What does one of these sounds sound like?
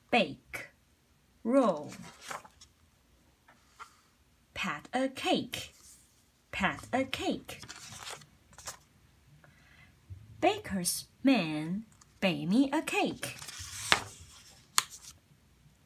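A book's paper pages rustle as they turn.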